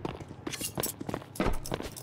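A knife swishes through the air.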